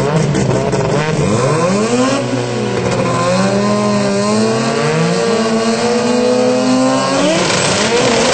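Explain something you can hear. Two drag-racing car engines rev up and down at the start line.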